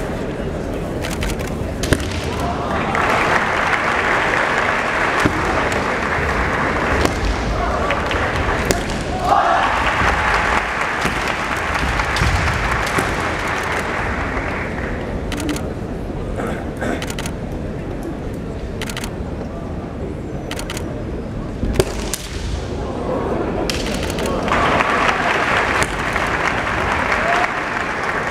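Bamboo swords clack and strike against each other.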